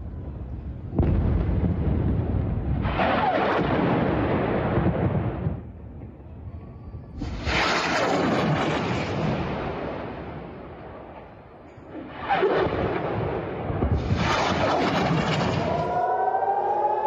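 Rockets launch with loud roaring whooshes, one after another.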